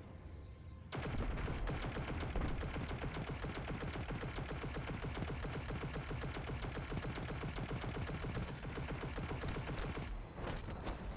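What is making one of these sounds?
A rapid-fire gun fires in quick bursts.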